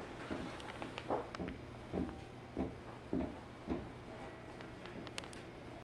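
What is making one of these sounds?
An electric commuter train runs along the track, heard from inside a carriage.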